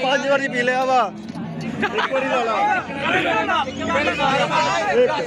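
Young men sing and shout together close by.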